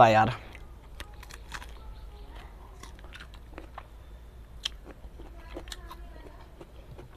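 A young man bites and crunches into a crisp fruit.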